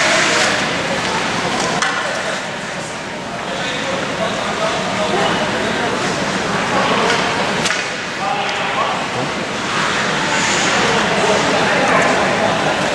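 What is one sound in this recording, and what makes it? Young men talk and shout together close by, in a large echoing hall.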